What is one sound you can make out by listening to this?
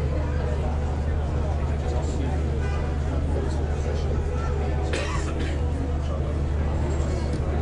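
A crowd of people chatters and murmurs outdoors.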